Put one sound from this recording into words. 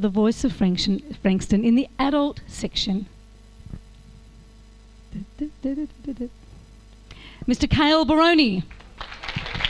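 A woman speaks with animation through a microphone and loudspeakers.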